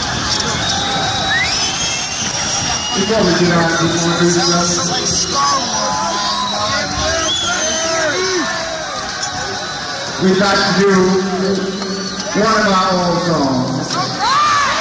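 A rock band plays loud live music that echoes through a large hall.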